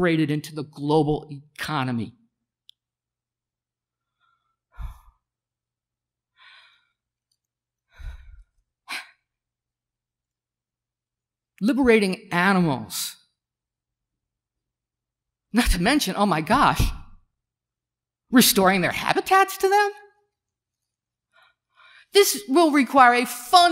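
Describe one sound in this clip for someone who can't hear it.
A middle-aged man speaks into a microphone, in bursts with long pauses.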